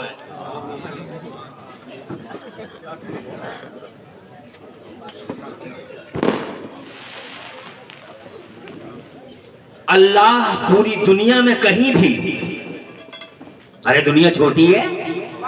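A man speaks forcefully through a loudspeaker, sometimes in a chanting tone.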